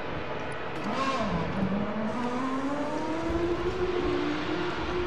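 A race car engine revs up.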